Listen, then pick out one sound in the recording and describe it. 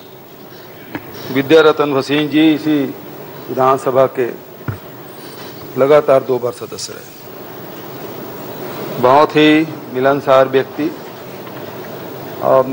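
An elderly man speaks slowly and solemnly into a microphone in a large hall.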